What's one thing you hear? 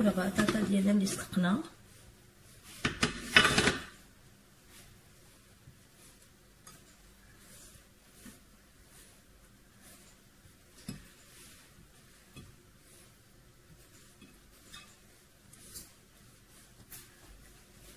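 Slices of potato are set down softly into a baking dish, one by one.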